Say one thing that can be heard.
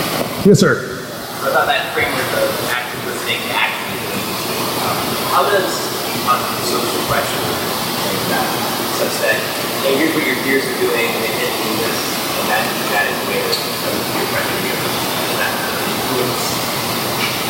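A man speaks through a microphone in a large echoing room.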